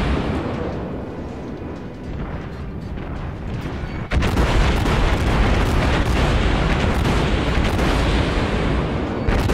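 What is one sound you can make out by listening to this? Heavy naval guns boom in a rapid barrage.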